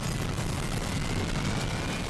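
Thunder cracks and rumbles.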